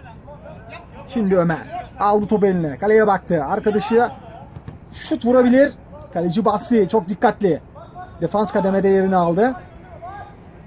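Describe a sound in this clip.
Men shout loudly across an outdoor football pitch.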